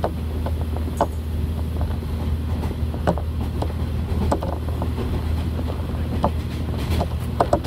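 A diesel railcar rumbles along the track, heard from inside.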